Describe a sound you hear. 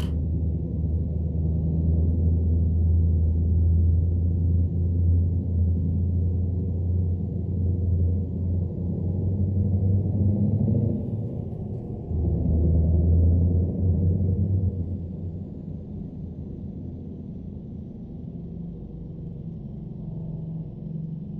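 A diesel truck engine drones from inside the cab while cruising.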